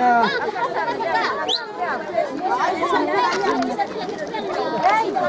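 A crowd of men and women chatter loudly all around, close by, outdoors.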